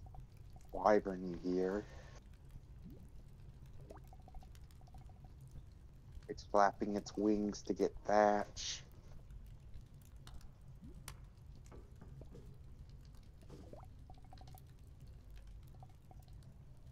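A fire crackles softly in a hearth.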